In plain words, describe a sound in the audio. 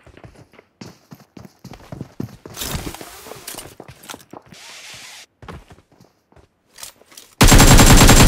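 Video game sound effects of footsteps, gunfire and clatter play from a tablet.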